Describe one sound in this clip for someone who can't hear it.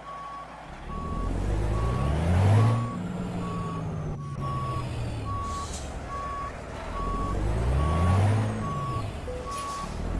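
A truck engine revs up and down.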